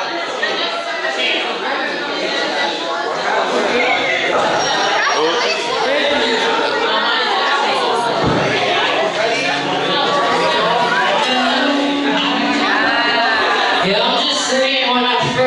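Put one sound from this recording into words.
A crowd of people chatters and cheers loudly in a crowded room.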